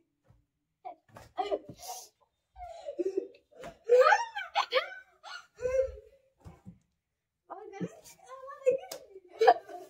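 A girl laughs.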